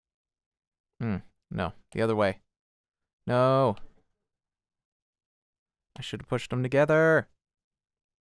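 A man speaks in short bursts close to a microphone.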